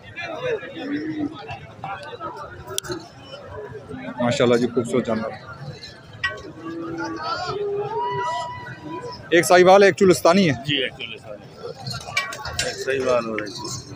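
Men talk loudly at once outdoors in a busy crowd.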